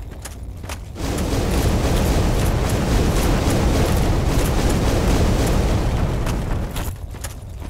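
Molten lava roars and hisses.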